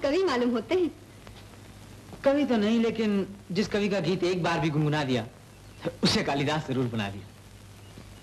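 A young woman speaks playfully.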